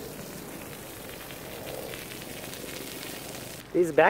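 Water jets spray and patter on the ground at a distance.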